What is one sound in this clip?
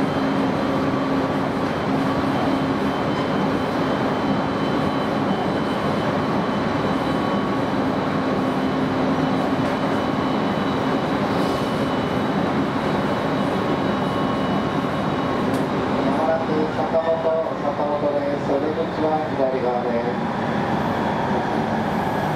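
An electric commuter train runs along the track, heard from inside the carriage.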